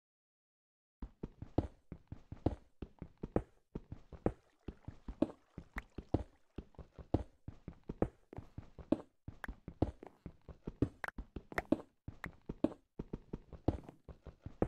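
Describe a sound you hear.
A pickaxe chips rapidly at stone, with blocks cracking and breaking.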